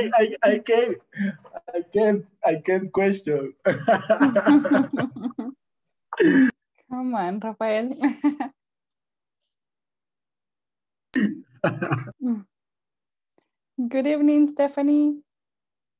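A young woman laughs over an online call.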